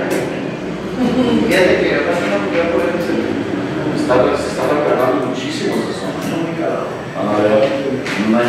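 A man speaks steadily into a microphone in a room with some echo.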